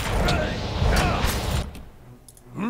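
Weapons clash and magic crackles in a noisy fight.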